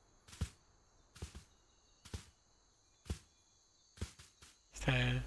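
Light footsteps pad across soft ground.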